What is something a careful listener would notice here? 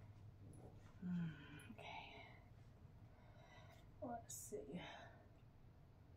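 A woman speaks briefly and quietly nearby.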